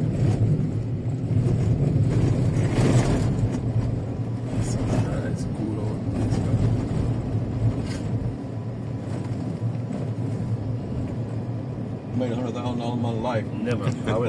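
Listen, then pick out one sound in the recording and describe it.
Tyres rumble over a rough dirt road.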